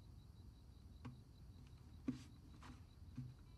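An acoustic guitar's wooden body knocks and bumps softly as it is moved.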